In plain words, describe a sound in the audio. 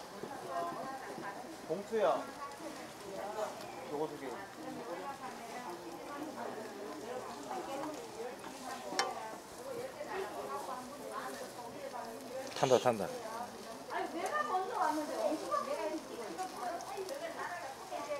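Oil sizzles in a frying pan.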